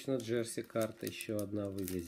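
Scissors snip through foil.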